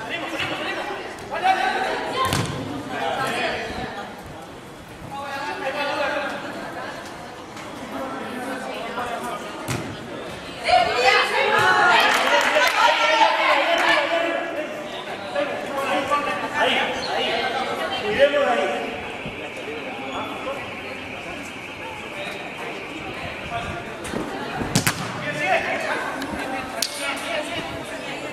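A crowd of young women and girls shouts and cheers.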